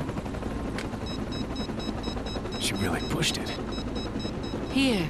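A small electronic device beeps rapidly.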